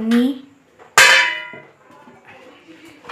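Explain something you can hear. A metal lid clinks against a pot.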